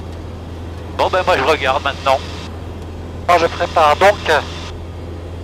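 A man speaks calmly over a headset intercom.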